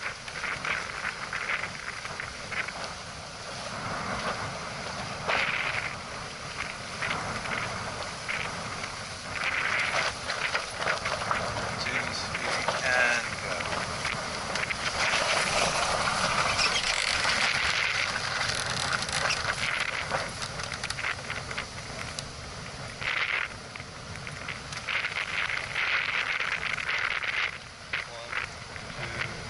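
Water splashes and rushes along a boat's hull.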